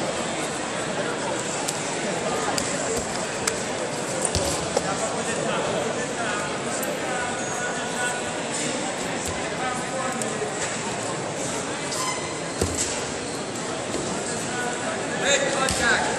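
Wrestlers' feet thump and slap on a mat in a large echoing hall.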